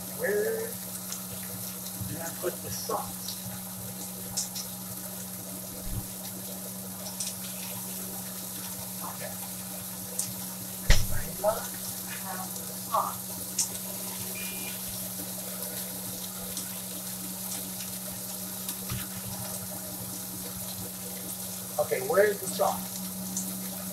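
A man speaks briefly nearby.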